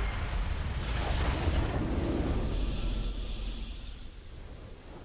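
A deep magical blast booms and shimmers, then fades away.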